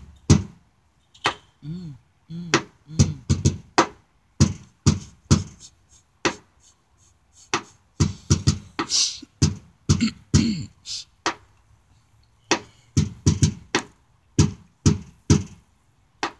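A hand taps sharply on a car's metal body, again and again.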